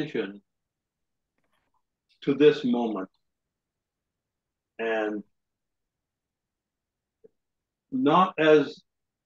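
An elderly man speaks calmly in short phrases with pauses, heard through a microphone on an online call.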